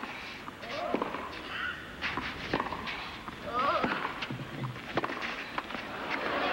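A tennis ball is struck sharply back and forth by rackets.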